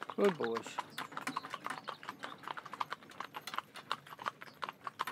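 Horses' hooves clop steadily on a paved lane.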